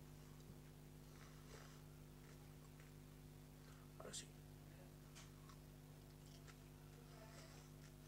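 A boy chews food with his mouth close by.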